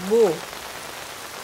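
A young woman asks a short question softly, close by.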